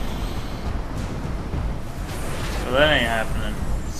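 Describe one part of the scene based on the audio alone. Energy beams whoosh and hum loudly.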